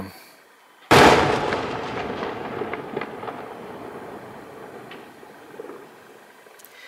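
A firework bursts with a loud boom that echoes away.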